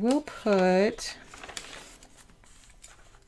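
Paper pages rustle as a planner page is turned.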